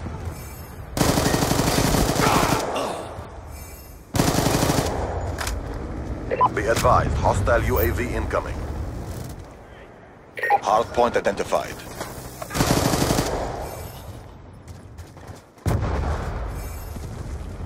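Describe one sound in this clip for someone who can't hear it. A rifle fires rapid bursts of shots, with loud booming echoes.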